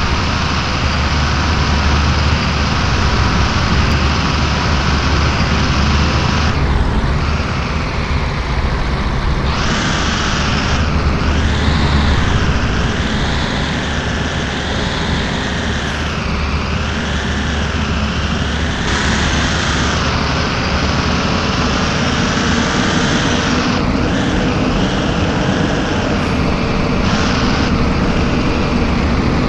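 A bus engine hums steadily while the bus drives along a winding road.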